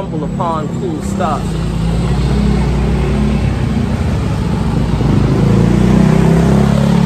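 A motor scooter engine hums nearby as it passes.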